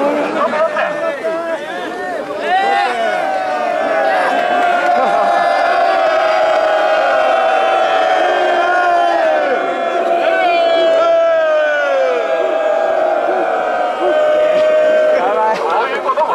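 A large crowd of men and women sings and chants loudly together outdoors.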